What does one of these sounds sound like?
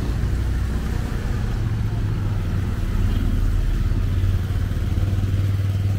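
A motor scooter hums past on the road.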